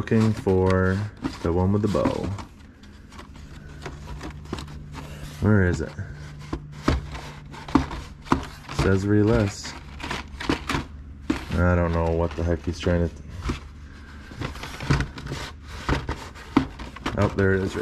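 Stiff plastic packages rustle and clack as a hand flips through them.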